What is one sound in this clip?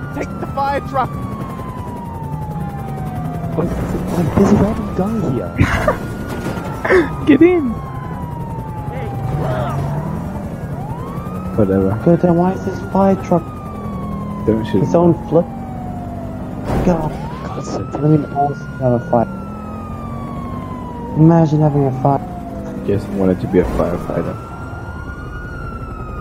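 A police siren wails in a steady rising and falling sweep.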